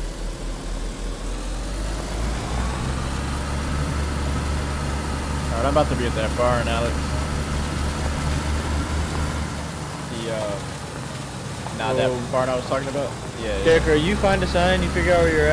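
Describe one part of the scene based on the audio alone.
Tyres crunch over a dirt track.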